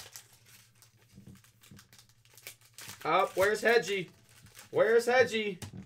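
A foil wrapper crinkles as hands tear it open.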